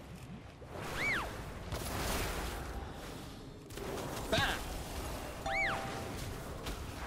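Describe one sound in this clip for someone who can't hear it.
Game chimes ring out in short pitched tones.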